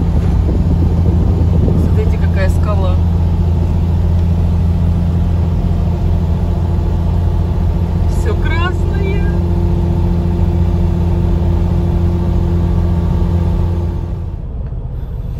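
Tyres roll steadily on the road.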